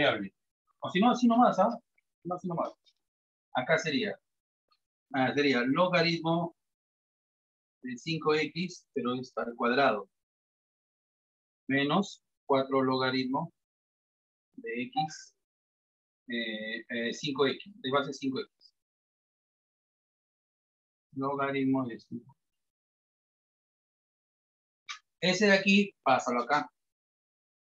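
A man speaks calmly in bursts, as if explaining, close by.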